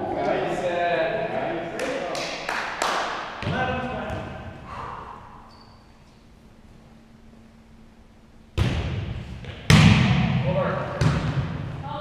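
Several men call out to each other in a large echoing hall.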